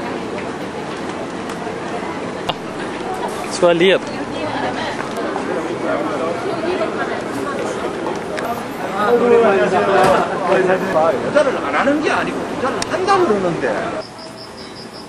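A crowd of people chatters on a busy street outdoors.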